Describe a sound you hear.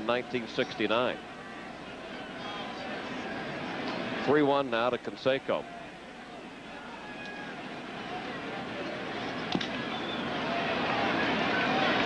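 A large crowd murmurs and cheers in a stadium, growing louder.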